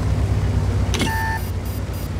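A tank gun fires with a sharp boom.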